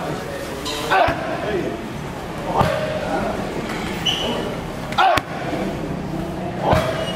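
Kicks and punches thud sharply against padded mitts.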